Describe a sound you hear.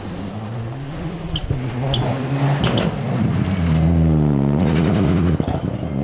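Gravel and stones spray and clatter under a car's tyres.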